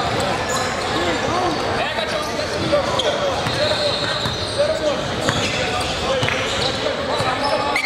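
A crowd chatters throughout a large echoing gym.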